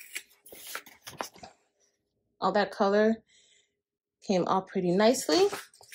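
A plastic transfer sheet crinkles as it is handled.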